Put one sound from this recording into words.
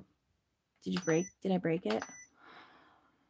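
A digital scale beeps as its button is pressed.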